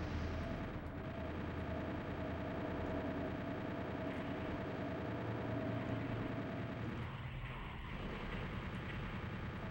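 Game gunfire blasts rapidly.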